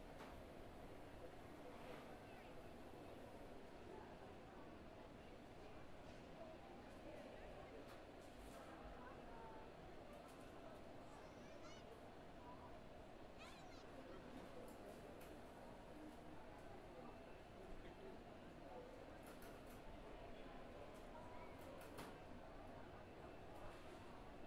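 People murmur indistinctly in the background of a large room.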